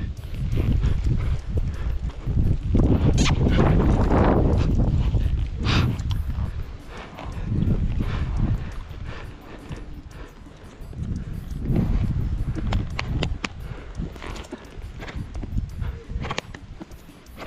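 A horse's hooves thud softly on sand at a walk.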